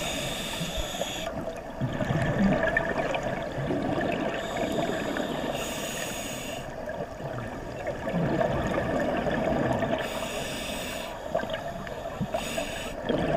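Scuba bubbles gurgle and rumble underwater.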